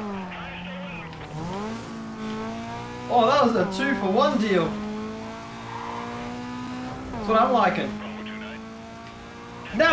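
A car engine hums steadily and rises in pitch as the car speeds up.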